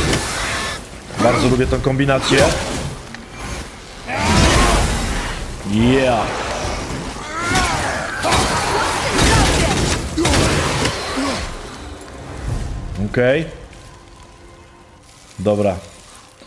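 An elderly man talks with animation into a microphone.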